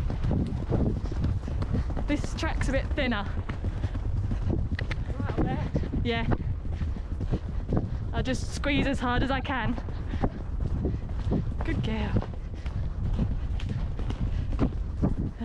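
A horse's hooves thud steadily on a grassy track.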